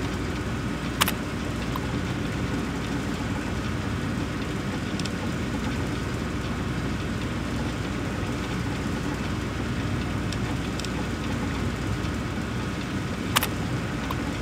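A computer terminal gives a sharp click as a menu choice is made.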